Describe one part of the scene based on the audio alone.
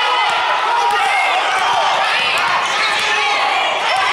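A basketball bounces as it is dribbled.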